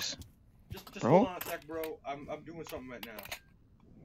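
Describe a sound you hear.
A new rifle magazine clicks into place.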